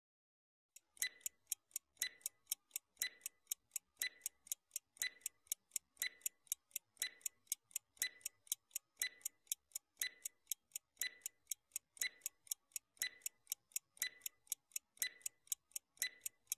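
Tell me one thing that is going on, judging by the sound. A clock ticks steadily, about twice a second.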